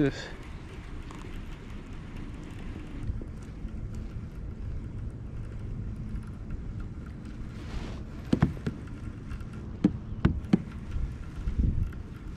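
A fishing reel clicks and whirs as the line is wound in.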